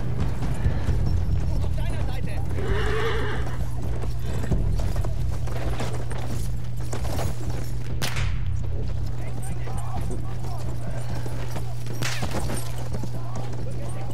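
A horse's hooves thud as it gallops over soft ground.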